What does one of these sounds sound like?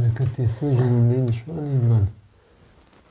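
A man speaks nearby with animation.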